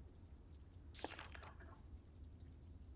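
A paper page turns.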